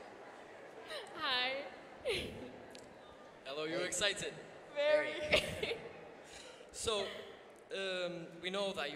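A young woman speaks over a microphone in a large hall.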